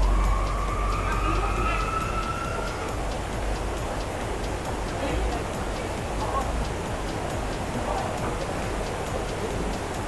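A man splashes through water while swimming.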